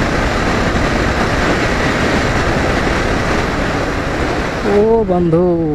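Wind roars loudly past a moving motorcycle.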